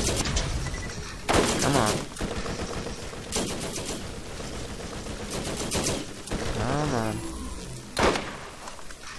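Gunshots crack loudly, one after another with short pauses.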